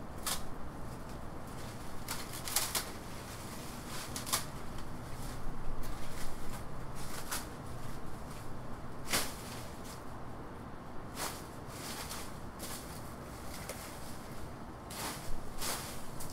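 A man digs at the ground, with knocks and scrapes.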